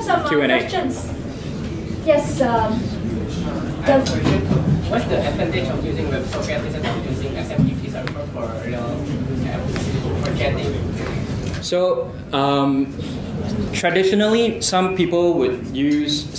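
A man speaks steadily into a microphone, with a slight echo.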